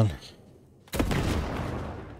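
A gunshot bangs.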